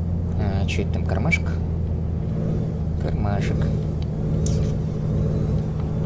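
A truck engine drones steadily at low pitch.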